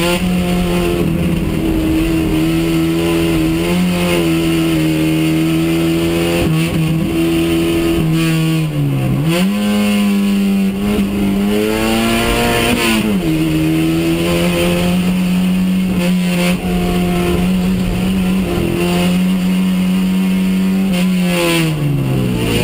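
A rally car engine roars loudly from inside the cabin, revving up and down with gear changes.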